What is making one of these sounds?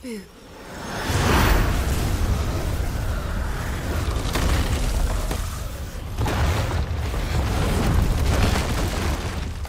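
Strong wind roars and gusts.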